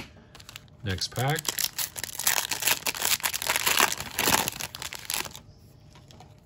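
A foil card pack crinkles and rustles as it is torn open.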